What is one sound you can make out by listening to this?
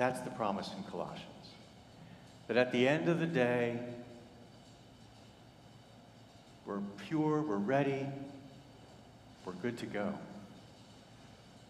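A man chants in short phrases through a microphone in a large echoing hall.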